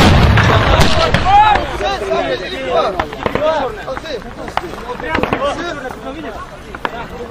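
Men shout loudly nearby.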